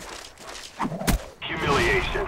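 A knife strikes with a sharp thud.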